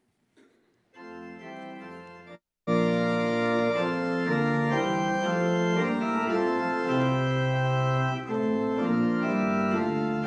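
A pipe organ plays.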